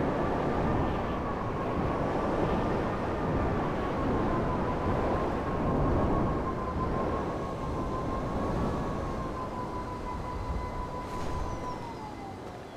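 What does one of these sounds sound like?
A small jet engine hums steadily, wavering slightly in pitch, then winds down.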